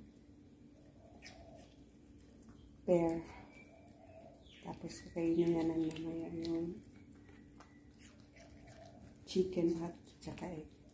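A small dog chews and laps food from a plate close by.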